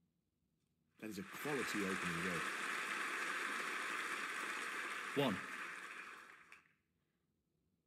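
An audience applauds steadily, then fades out.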